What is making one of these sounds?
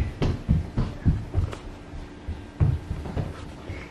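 A small child's footsteps thud on a wooden floor.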